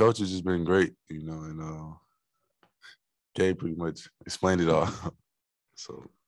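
A young man speaks into a microphone in a relaxed, friendly manner.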